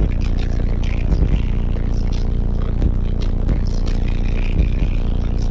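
Heavy bass music booms at high volume from car subwoofers inside a vehicle.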